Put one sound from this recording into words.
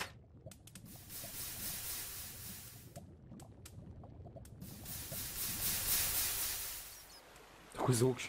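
Water hisses loudly as it pours onto lava.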